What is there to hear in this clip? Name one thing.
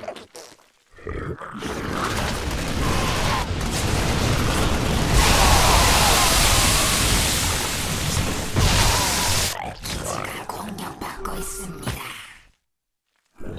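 Gunfire and explosions crackle in a busy battle.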